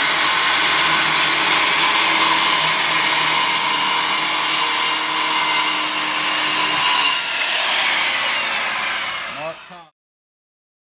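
A circular saw whines loudly as it cuts through wood, then spins down.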